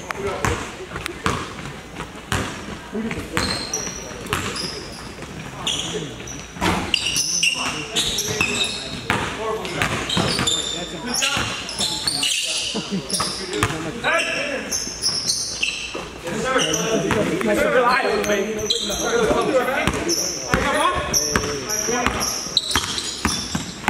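Young men shout and call out in a large echoing gym.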